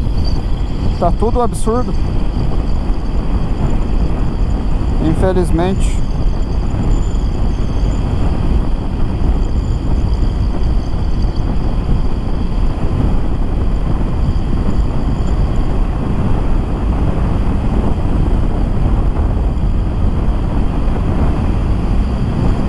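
Wind rushes loudly and steadily past a motorcycle rider at speed.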